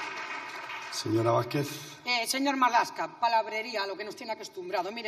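A woman speaks steadily into a microphone in a large hall.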